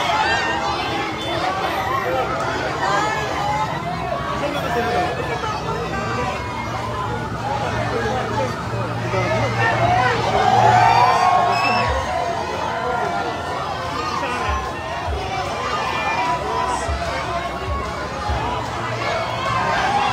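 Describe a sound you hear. A large crowd cheers and shouts loudly outdoors.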